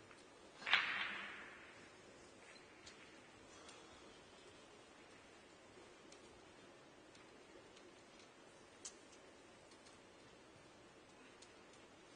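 Snooker balls click against each other on a table.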